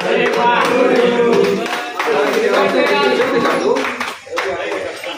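A group of young men sing and cheer together.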